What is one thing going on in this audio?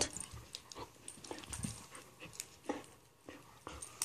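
Two dogs scuffle and tussle playfully close by.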